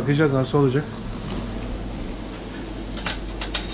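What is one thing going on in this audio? Meat sizzles on a hot griddle.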